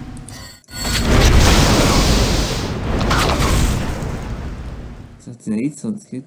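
A magic spell whooshes and crackles loudly.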